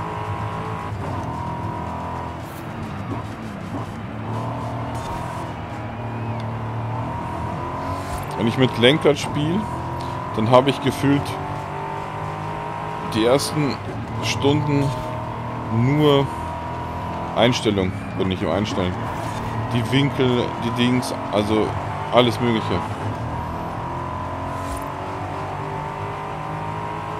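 A car engine roars steadily and shifts pitch as it speeds up and slows down.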